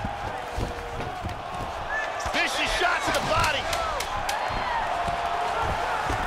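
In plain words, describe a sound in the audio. Fists thud against a body in quick blows.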